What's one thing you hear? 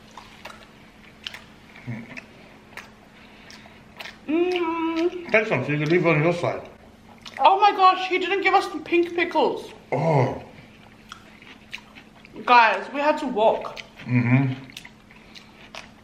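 Crunchy food is chewed loudly close to a microphone.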